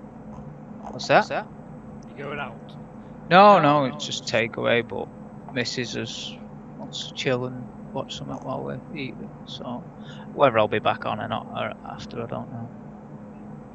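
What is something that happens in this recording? A young man talks casually and with animation into a close microphone.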